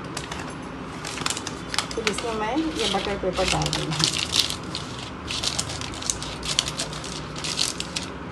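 Baking paper crinkles as hands press it into a metal tin.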